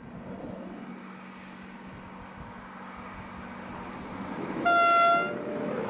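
A diesel train approaches on rails.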